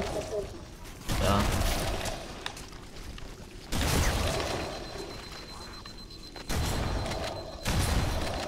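A rifle fires in bursts.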